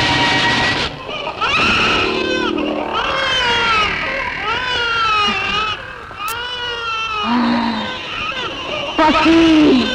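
A woman sings with a high, wavering voice.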